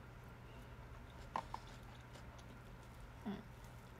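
A young woman bites and chews food.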